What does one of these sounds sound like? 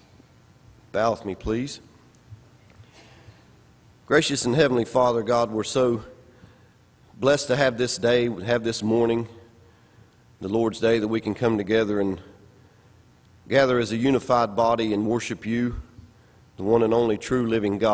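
A man speaks into a microphone in phrases with pauses, in an echoing room.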